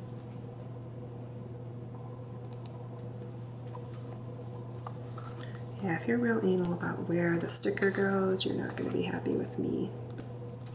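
Paper sticker sheets rustle and crinkle as they are handled.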